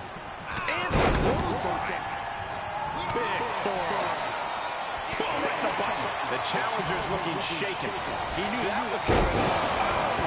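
Bodies slam onto a wrestling mat with heavy thuds.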